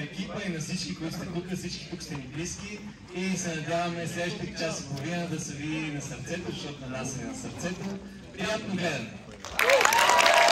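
A man speaks to an audience through loudspeakers in a large echoing hall.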